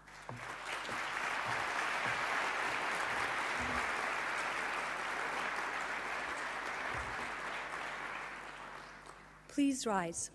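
An audience applauds in a large hall, then slowly fades.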